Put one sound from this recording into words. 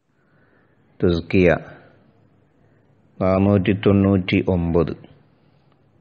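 A man speaks calmly into a microphone in short phrases.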